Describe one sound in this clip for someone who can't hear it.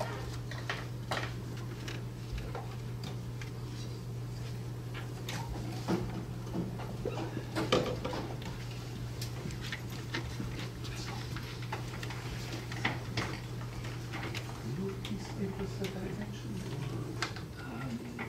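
A projector hums with a low, steady drone.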